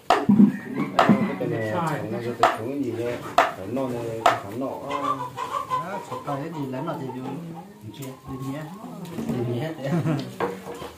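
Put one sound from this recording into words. A knife chops on a wooden board with sharp knocks.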